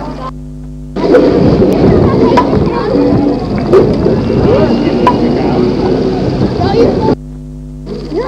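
A hammer taps on a nail in wood.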